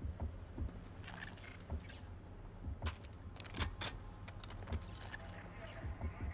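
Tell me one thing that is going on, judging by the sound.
A rifle clicks and clacks as it is handled.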